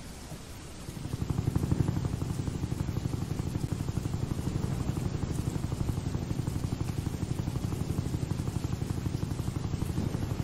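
A helicopter's rotor chops rapidly and steadily.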